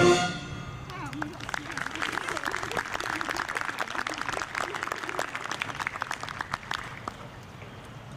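People clap and applaud.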